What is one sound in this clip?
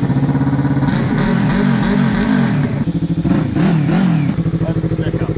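A motorcycle engine revs up and down in quick bursts.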